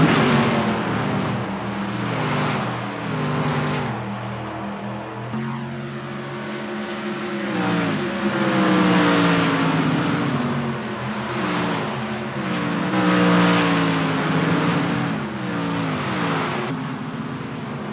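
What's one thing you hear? Racing car engines roar and shift gears at high speed.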